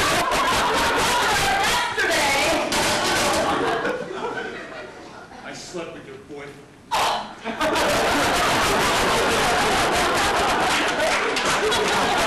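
A young woman shouts on a stage, heard from the audience.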